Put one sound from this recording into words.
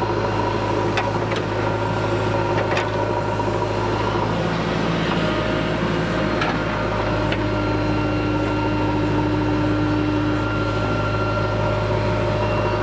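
A digger bucket scrapes and clanks against hard ground.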